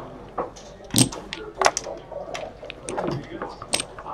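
Plastic checkers click and clack as they are moved across a board.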